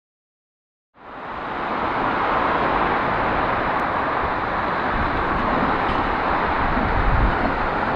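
Traffic roars steadily in the distance.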